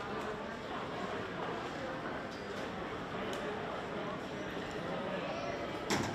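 A crowd of adults and children chatter at a distance in a large echoing hall.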